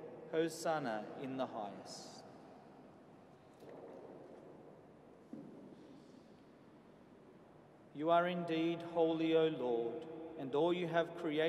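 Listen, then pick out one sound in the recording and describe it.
A man sings a chant through a microphone in a large echoing space.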